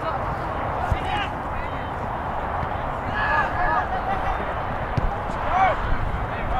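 Young men shout to each other from across the field.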